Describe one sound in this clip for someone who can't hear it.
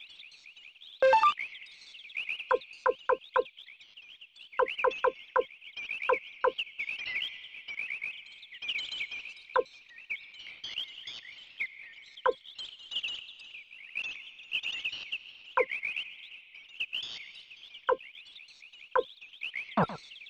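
Short electronic blips sound repeatedly as a menu cursor moves.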